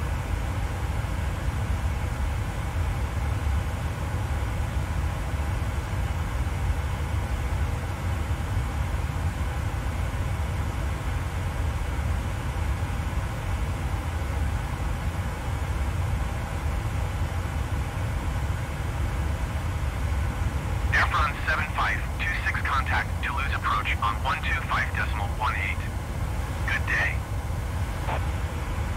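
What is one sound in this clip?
Jet engines drone steadily with a low rumble.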